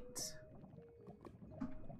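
Lava bubbles and pops softly.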